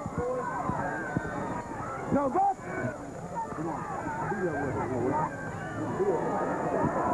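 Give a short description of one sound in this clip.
A large crowd of people shouts and cheers outdoors.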